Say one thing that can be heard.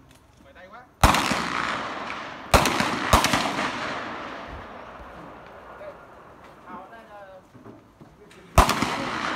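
Rifle shots crack one at a time outdoors and echo away.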